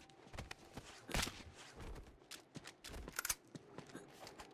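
Heavy punches land with dull thumps.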